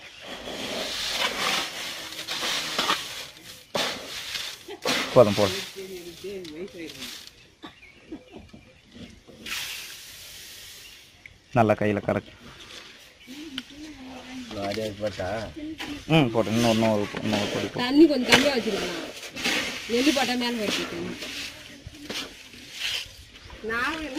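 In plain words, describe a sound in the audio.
Dry seeds rustle and scrape as hands scoop and stir them.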